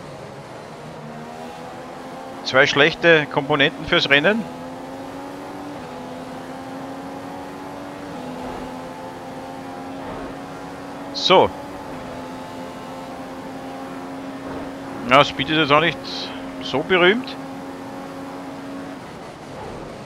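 A racing car engine whines steadily at high speed, shifting up through the gears.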